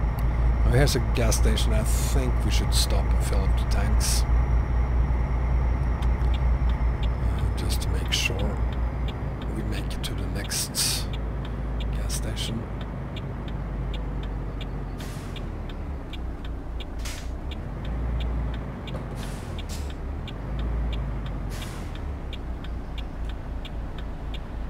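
A truck engine rumbles steadily and slows down.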